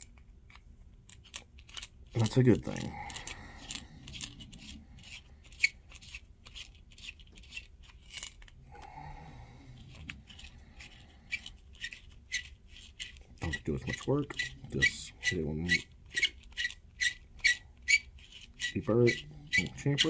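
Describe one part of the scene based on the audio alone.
Small metal parts click and tap.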